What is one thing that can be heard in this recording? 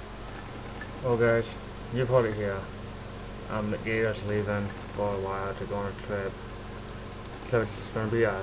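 A young man speaks calmly, close up.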